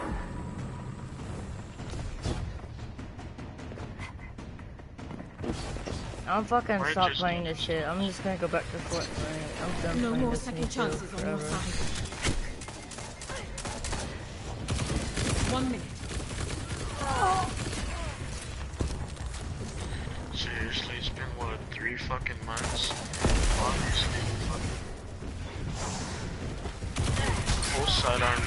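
Gunfire crackles in quick bursts.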